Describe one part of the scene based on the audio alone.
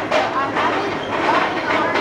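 Footsteps tap on a brick pavement nearby.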